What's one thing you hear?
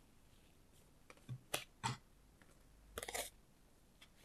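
Cards are placed on a table with soft taps.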